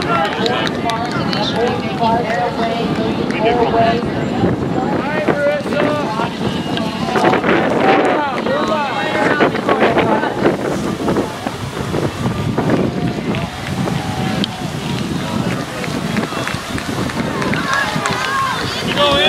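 A crowd of spectators cheers and calls out outdoors.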